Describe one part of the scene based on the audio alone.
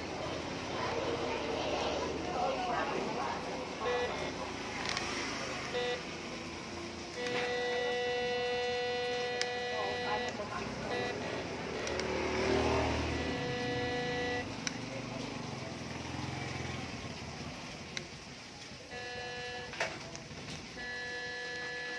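A finger clicks the buttons on a metal detector.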